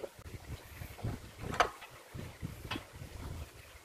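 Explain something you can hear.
A metal tool rest clanks and knocks as it is moved and tightened.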